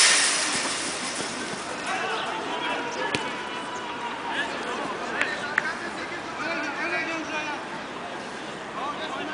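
Men shout and call out from a distance outdoors.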